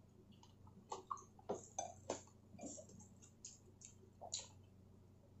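A man chews crunchy food with soft crunches.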